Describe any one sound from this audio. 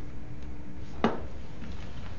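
A wooden object knocks down on a desk.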